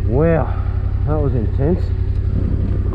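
A motorcycle engine revs up and down in short bursts.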